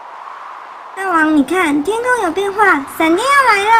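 A young woman's high voice speaks excitedly, close to a microphone.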